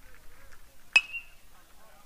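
A metal bat cracks against a ball.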